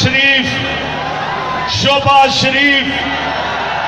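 A man shouts through loudspeakers to a crowd.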